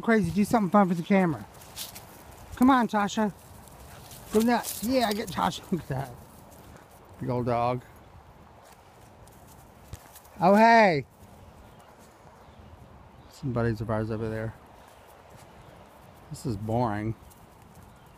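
A small dog barks and yelps in short bursts outdoors.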